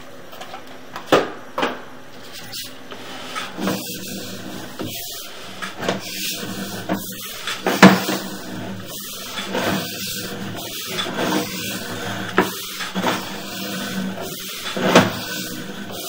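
A small machine knocks and scrapes as it moves through a pipe.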